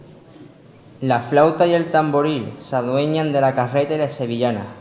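A young man reads aloud through a microphone.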